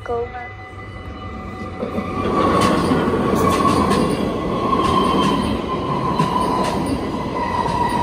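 A train rushes past close by with a loud roar and clatter.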